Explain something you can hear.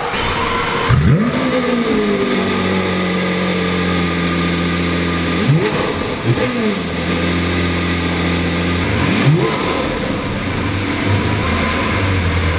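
A sports car engine idles with a deep steady rumble.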